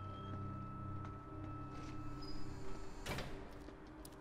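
A metal door slams shut.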